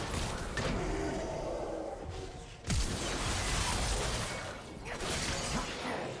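Fantasy game spell effects whoosh and burst.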